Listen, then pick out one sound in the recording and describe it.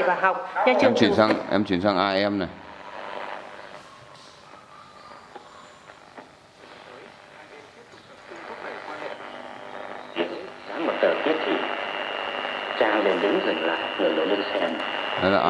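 A small portable radio plays sound through its tinny speaker.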